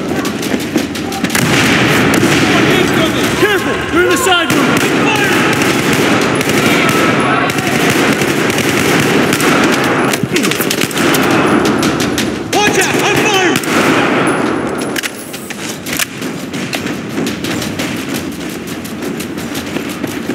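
Distant gunfire and explosions rumble throughout.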